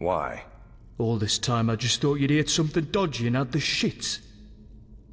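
A man speaks calmly at close range.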